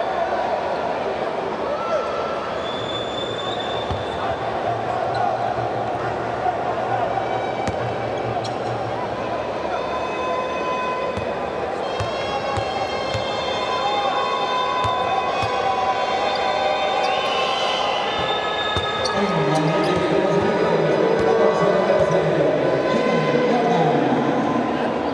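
A large indoor crowd murmurs and cheers in an echoing arena.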